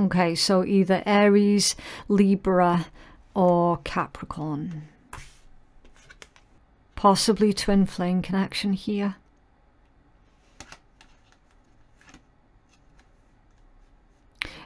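Playing cards rustle and tap softly as they are shuffled by hand.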